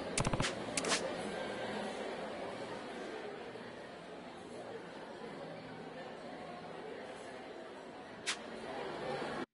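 A short interface blip sounds as a menu opens and closes.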